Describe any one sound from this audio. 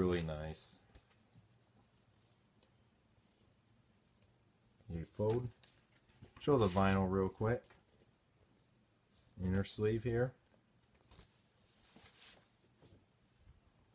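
Paper rustles as a record sleeve is handled.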